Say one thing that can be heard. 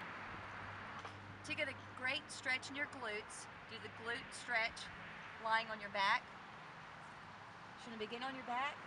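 A woman talks calmly, close by.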